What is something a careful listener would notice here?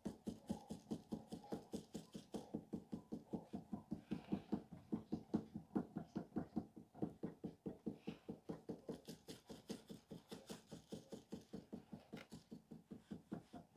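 A wooden tool pats and taps quickly and steadily on soft clay.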